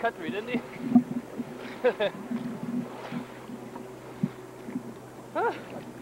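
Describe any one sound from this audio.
A swimmer splashes in the water close by.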